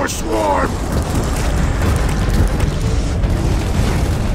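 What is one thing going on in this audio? A fire burns with a low roar.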